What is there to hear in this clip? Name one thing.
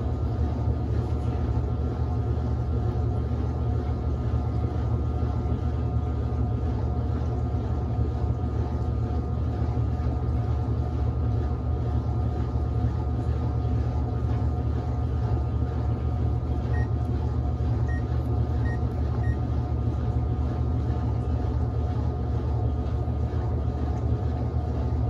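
A washing machine drum spins with a steady low hum and whir.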